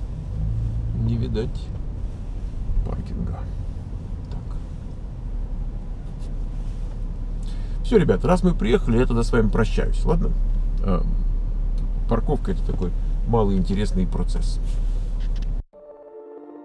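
A middle-aged man talks with animation close by inside a car.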